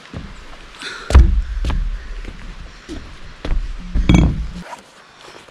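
Footsteps thud on a wooden deck.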